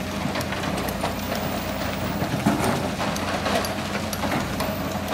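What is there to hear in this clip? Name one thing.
An excavator engine rumbles steadily.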